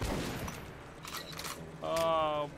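Metal clicks and clacks as a gun is reloaded and swapped.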